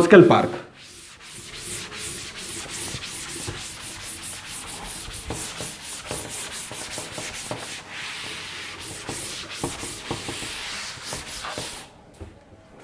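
A duster rubs and scrapes across a chalkboard.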